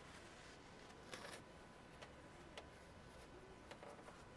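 Plastic engine parts click and rustle as they are handled.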